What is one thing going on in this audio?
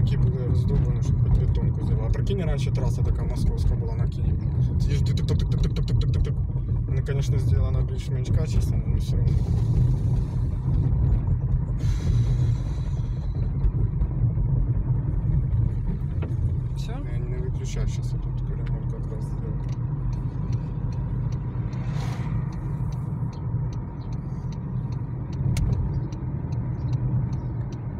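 A car engine hums steadily.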